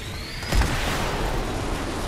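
A burst of energy whooshes and crackles in a game.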